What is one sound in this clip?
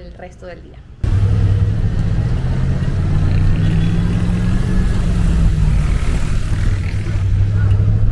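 City traffic rumbles by with engines running.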